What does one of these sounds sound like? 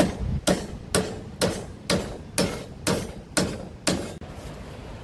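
A hammer strikes metal in quick, steady blows.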